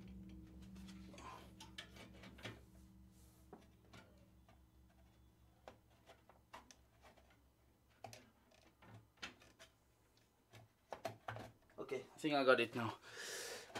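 Small plastic and metal parts click and tap.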